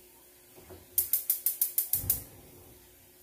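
A spoon taps on the rim of a metal pot.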